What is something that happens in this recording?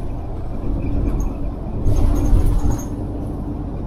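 A motorcycle rides by.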